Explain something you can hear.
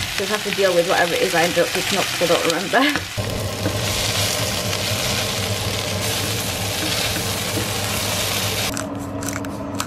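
Vegetables sizzle and hiss in a hot pan.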